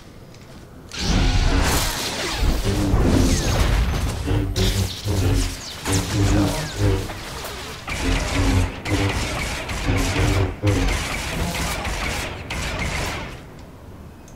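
Lightsabers hum and clash in a fight.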